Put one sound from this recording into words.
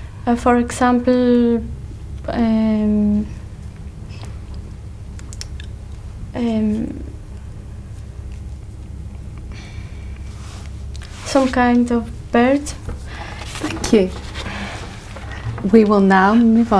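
A young woman speaks hesitantly into a nearby microphone, pausing often.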